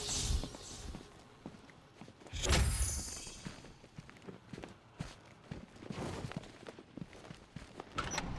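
Heavy footsteps thud slowly on a hard floor.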